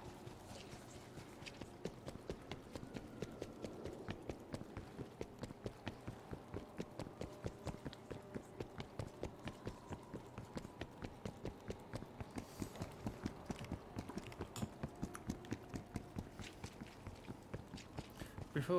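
Quick footsteps run steadily on hard ground.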